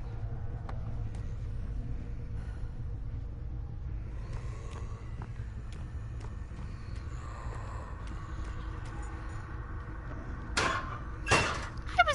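Footsteps thud softly on creaky wooden floorboards.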